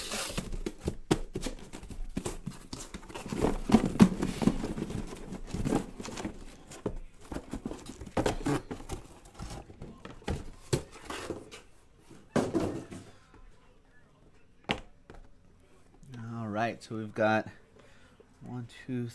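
Cardboard boxes rub and knock as they are handled.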